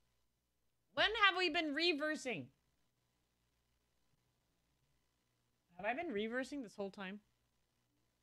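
A young woman speaks brightly into a microphone in two short bursts.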